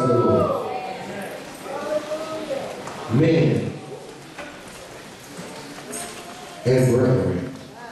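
A man preaches loudly and with fervour through a microphone in an echoing hall.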